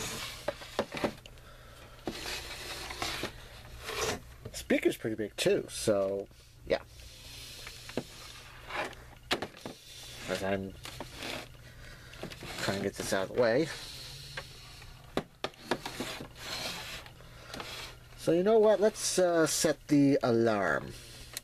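A plastic clock radio knocks and rattles as it is turned over by hand.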